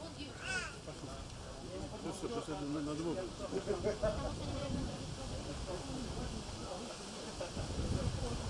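Several people talk nearby outdoors.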